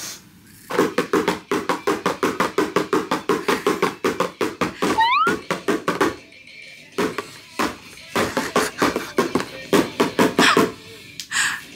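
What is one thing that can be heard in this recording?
A small boy taps rapidly on a toy drum game.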